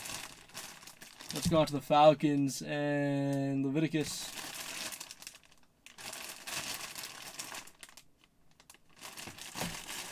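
Plastic wrap crinkles and rustles as it is handled.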